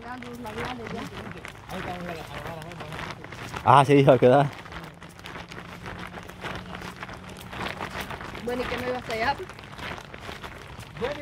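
Young women talk casually close by outdoors.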